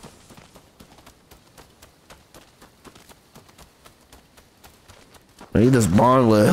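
Quick footsteps run over stone and dirt.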